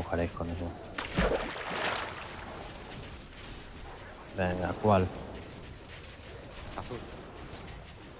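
Game spell effects whoosh and crackle in bursts.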